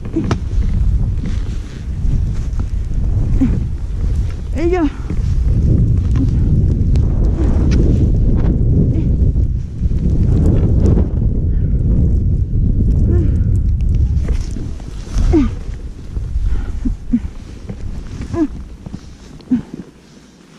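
Wind rumbles loudly against a nearby microphone.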